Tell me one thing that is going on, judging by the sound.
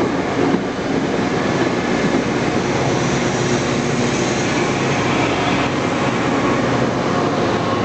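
A diesel locomotive engine drones loudly as it passes.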